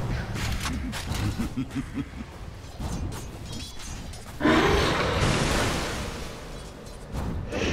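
Magic spells crackle and clash in a fantasy battle.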